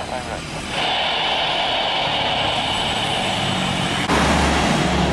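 Jet engines roar steadily as an airliner rolls along a distant runway.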